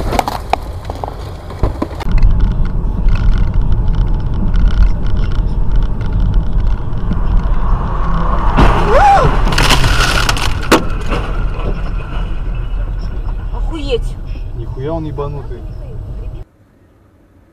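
A car engine rumbles loudly while driving.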